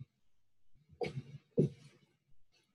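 Feet thump onto a carpeted floor.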